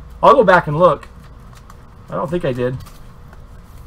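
Plastic wrapping crinkles as cards are handled.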